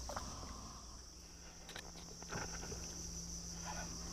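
A fishing reel whirs as its handle is wound.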